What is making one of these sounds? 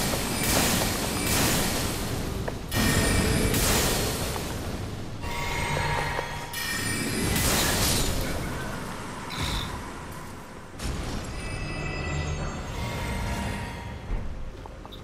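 Magic spells burst and whoosh loudly.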